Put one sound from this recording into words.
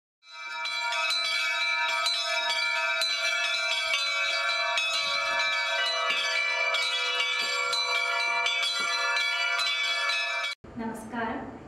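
Bells ring in a steady, shimmering peal.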